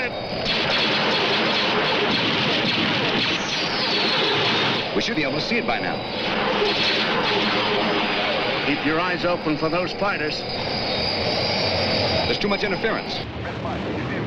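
Fighter craft engines roar past at high speed.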